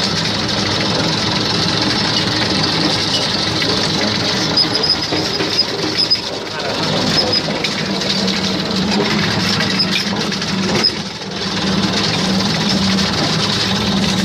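A tractor engine chugs steadily up close.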